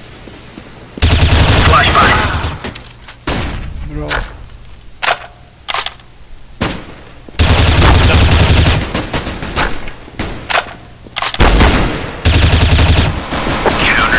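Rapid bursts of rifle fire ring out, close by.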